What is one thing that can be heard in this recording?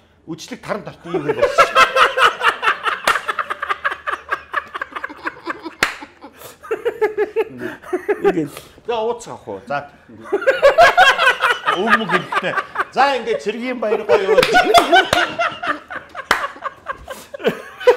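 Men laugh loudly nearby.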